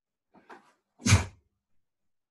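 A man gives a short sharp shout.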